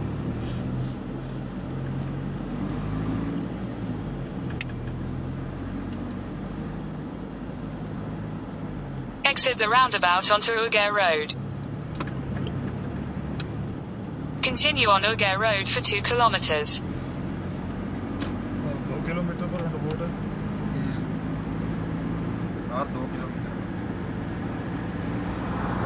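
Tyres roll and rumble on a smooth road.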